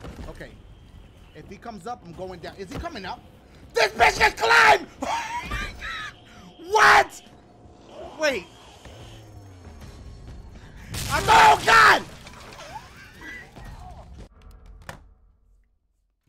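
A young man talks and shouts with animation close to a microphone.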